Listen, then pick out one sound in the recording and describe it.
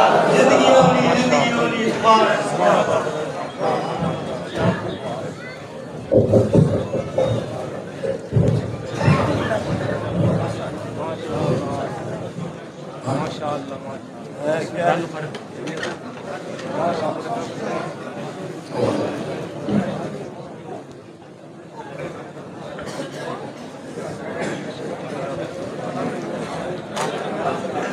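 A crowd of men chatters nearby in a busy, reverberant room.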